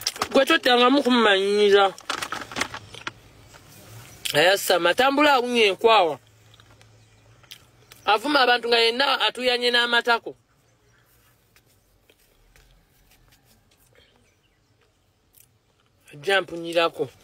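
A young man sings close by in short bursts.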